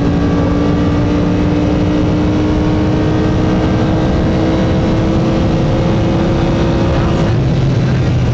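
A sports car engine roars loudly, rising steadily in pitch.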